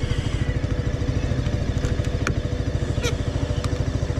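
A hand clicks a switch on a motorcycle handlebar.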